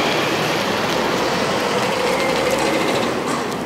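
A car rolls past.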